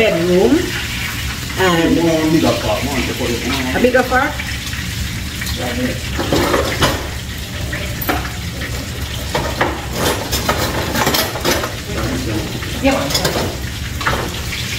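Food sizzles in a pan.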